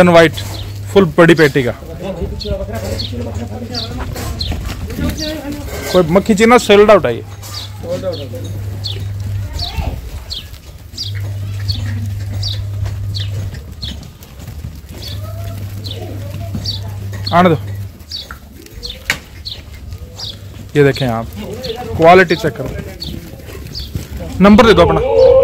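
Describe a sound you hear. Goats bleat loudly and repeatedly.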